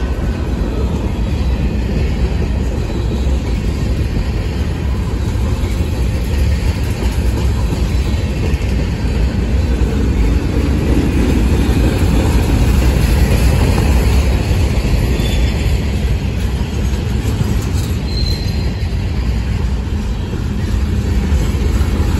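A freight train rumbles steadily past close by.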